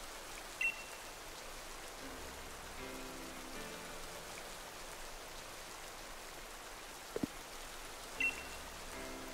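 A short electronic beep sounds as a menu choice is made.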